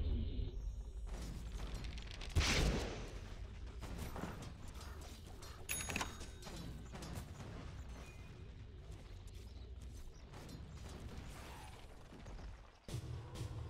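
Weapons clash in a fight.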